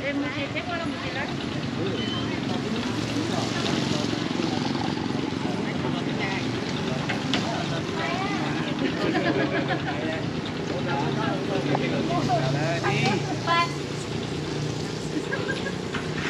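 Men and women chatter in a crowd outdoors.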